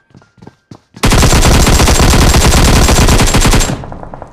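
An automatic rifle fires a long, rapid burst.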